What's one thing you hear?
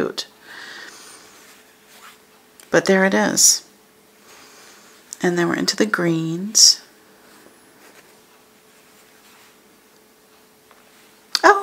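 Stiff paper rustles softly as sheets are lifted and shuffled.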